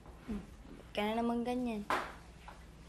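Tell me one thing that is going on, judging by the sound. A young woman speaks, close by.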